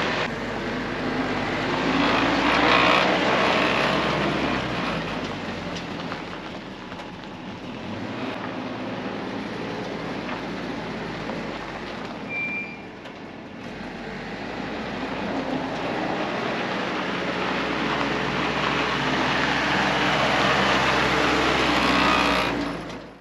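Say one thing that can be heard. A jeep engine rumbles as it drives past close by, moves away and comes back.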